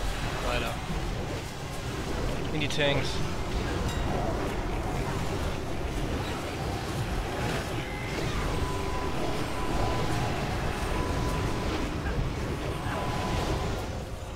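Spell effects whoosh and crackle in a battle.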